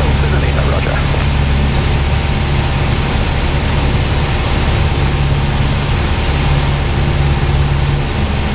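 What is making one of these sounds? A small plane's propeller engine drones loudly and steadily from inside the cabin.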